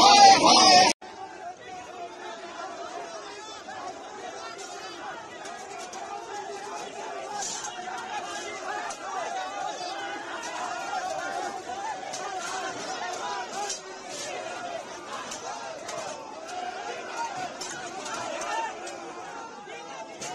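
A large crowd shouts in a tumult.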